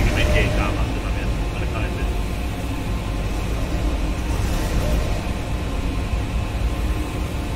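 Footsteps clang on a metal grating.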